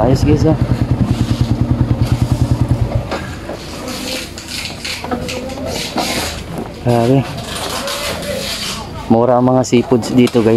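Men and women chatter and call out in a busy outdoor crowd.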